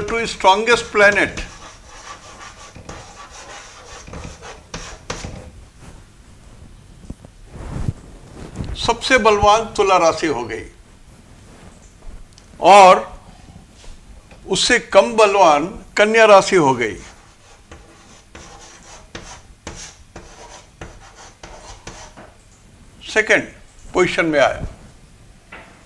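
An elderly man speaks calmly in a lecturing tone, close by.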